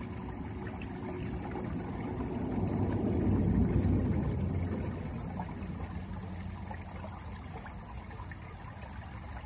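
Water flows and gurgles softly close by.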